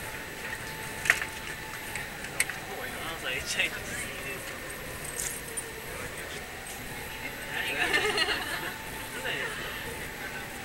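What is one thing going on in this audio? Young men and women talk and laugh close by.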